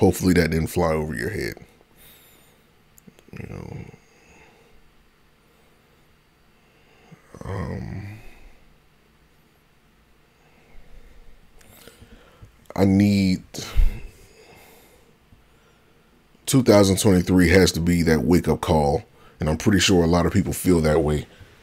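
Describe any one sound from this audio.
A man speaks calmly into a close microphone, with long pauses.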